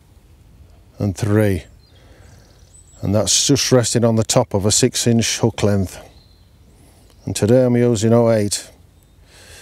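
A man speaks calmly and close up through a clip-on microphone.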